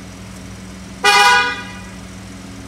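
A vehicle horn honks once briefly.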